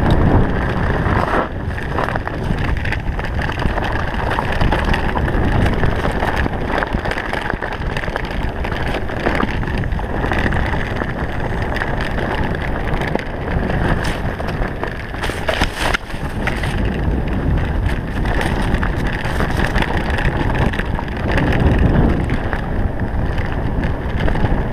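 Bicycle tyres rumble and crunch over a rough dirt trail.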